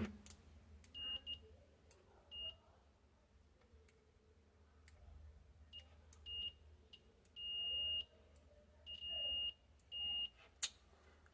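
A multimeter beeps in short and longer bursts.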